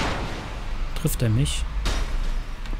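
An arrow strikes metal with a sharp clang.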